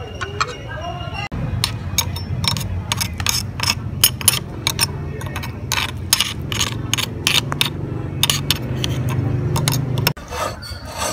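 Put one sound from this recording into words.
A meat grinder whirs and clatters steadily.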